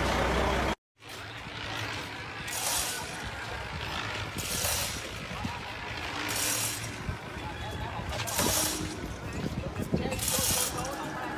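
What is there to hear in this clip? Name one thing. Wind gusts outdoors in bursts.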